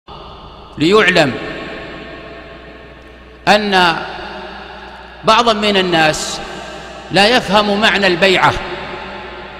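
A man speaks into a microphone in short, forceful bursts, his voice echoing in a reverberant room.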